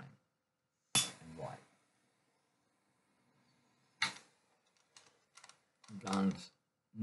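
A lighter clicks and flares.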